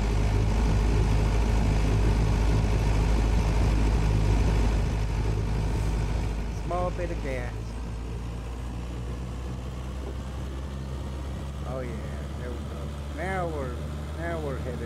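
A fire truck engine hums steadily.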